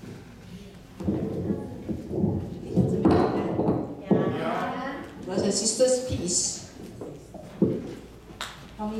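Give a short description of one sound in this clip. A woman speaks through a microphone in an echoing hall.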